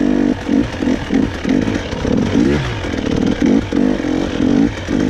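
A dirt bike engine revs up and down, close by.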